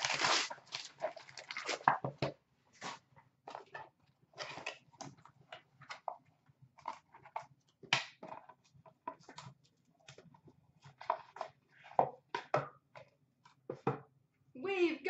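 Cardboard rustles and taps as a box is handled and opened.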